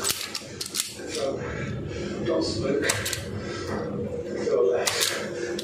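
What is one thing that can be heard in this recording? Pliers click and tap against a metal breaker box.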